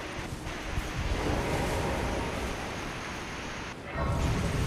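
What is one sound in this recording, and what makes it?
A soft magical shimmer rises and fades.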